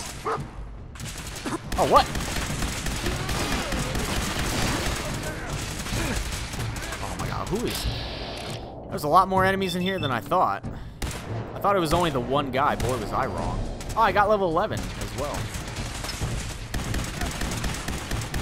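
Laser guns fire in rapid zapping bursts.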